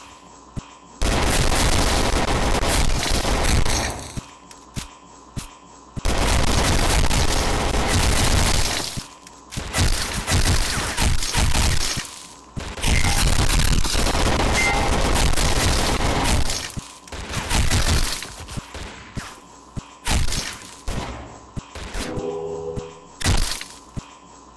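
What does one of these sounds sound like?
Pistol shots ring out in loud, rapid bursts.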